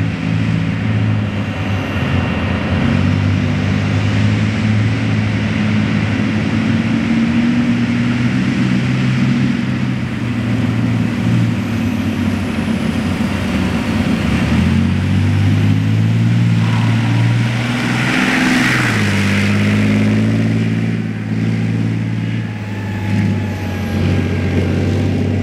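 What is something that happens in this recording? Tank tracks clank and squelch through thick mud.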